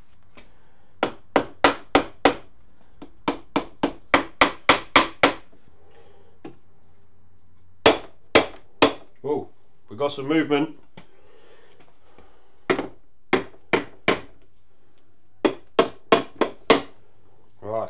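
A rubber mallet knocks repeatedly on a metal engine block.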